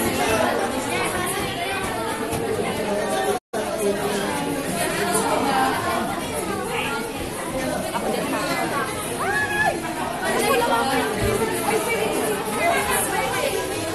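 A crowd of people chatters loudly nearby.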